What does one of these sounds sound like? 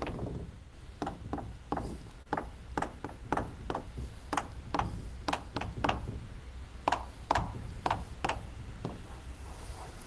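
Chalk taps and scrapes quickly on a blackboard.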